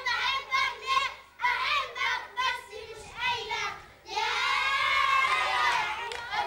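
Children shout and laugh excitedly close by.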